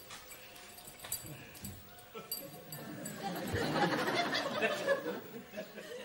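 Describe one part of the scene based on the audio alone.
A metal belt buckle clinks.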